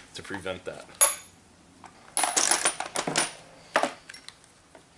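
Metal tools clink and rattle.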